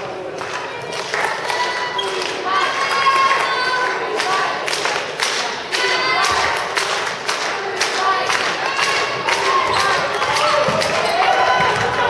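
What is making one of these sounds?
A ball bounces repeatedly on a hard floor in a large echoing hall.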